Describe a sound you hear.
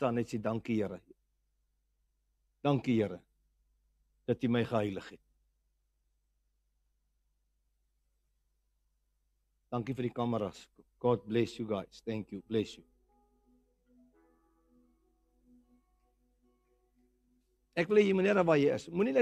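A middle-aged man speaks with animation through a microphone, in short bursts with pauses.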